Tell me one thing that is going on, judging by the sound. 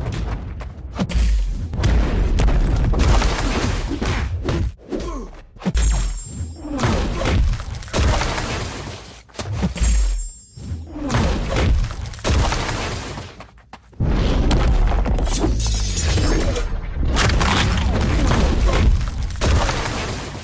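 Punches and blows land with heavy thuds.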